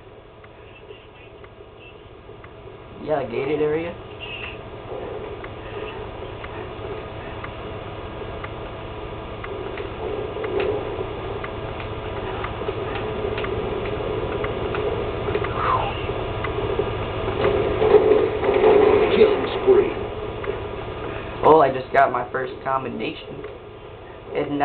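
Rifle shots and game sounds play through a television speaker, heard from across a room.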